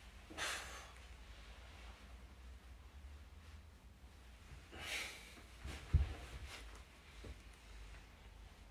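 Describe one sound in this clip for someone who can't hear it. A body rolls and thumps softly on a carpeted floor.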